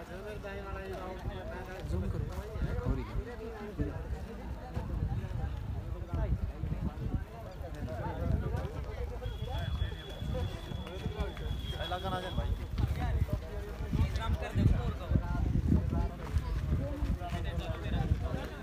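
A crowd of men talks and calls out nearby outdoors.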